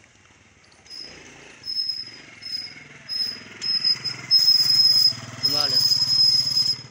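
A motorcycle engine rumbles nearby.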